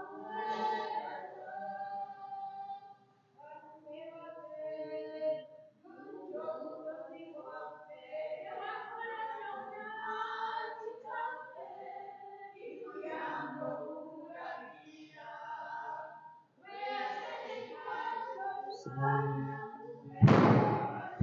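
A group of men and women sings a slow hymn together, with echo.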